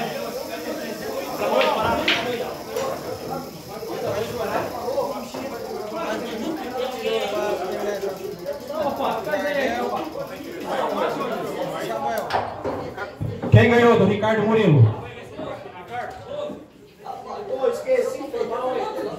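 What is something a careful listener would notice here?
Several men talk and chatter nearby.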